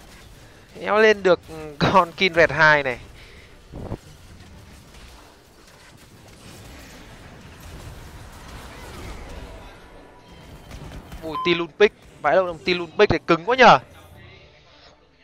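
Magic blasts and clashes of a video game battle play softly.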